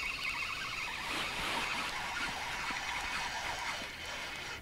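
A fishing reel whirs as its handle is cranked.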